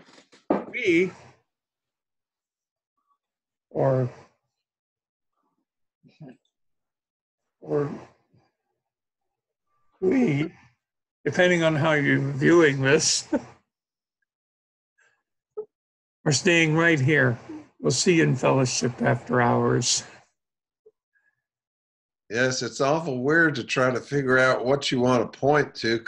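An older man talks with animation into a close microphone, pausing between phrases.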